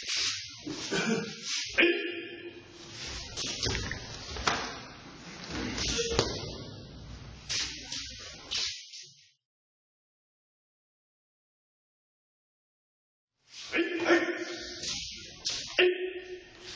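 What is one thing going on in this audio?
Martial artists' uniforms snap and rustle sharply.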